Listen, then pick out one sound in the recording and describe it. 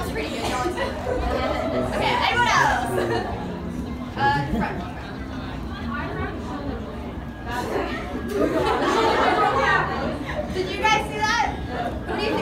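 A young woman on stage speaks loudly with animation.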